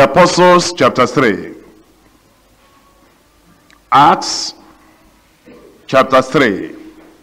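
A middle-aged man speaks with emphasis in short bursts, close to a microphone.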